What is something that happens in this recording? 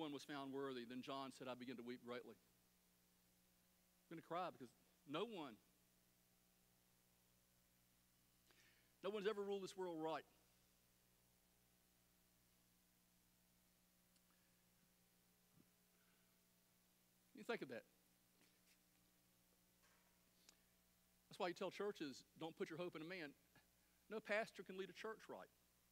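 A man speaks calmly through a microphone, with long pauses.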